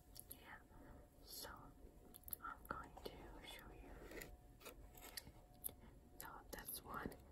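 A young woman whispers softly, very close to a microphone.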